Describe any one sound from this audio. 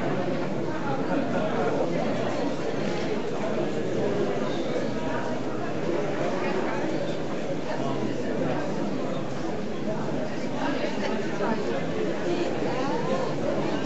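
A crowd of people chatters all around, close by.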